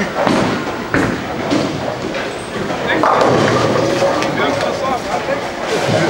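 A bowling ball rolls down a lane with a low rumble.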